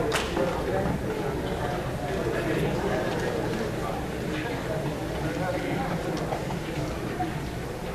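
A woman speaks softly into a microphone.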